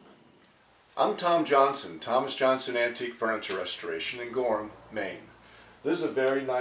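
An elderly man talks calmly and clearly, close by.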